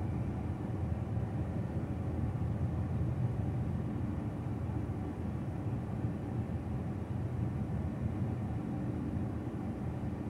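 A car engine hums steadily as the car drives slowly along a street.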